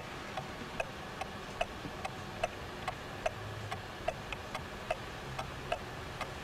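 A clock ticks steadily and crisply.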